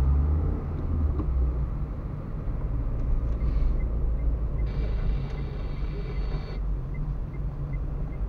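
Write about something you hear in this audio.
Tyres rumble over a wet road.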